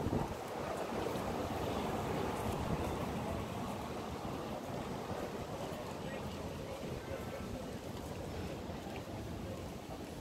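Traffic rumbles along a busy street outdoors.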